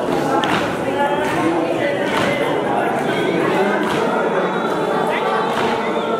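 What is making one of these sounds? A crowd of men and women chatter and call out in an echoing hall.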